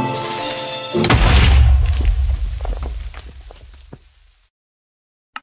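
A loud explosion booms and rumbles, then fades away.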